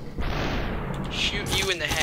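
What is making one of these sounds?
A pistol fires sharp shots.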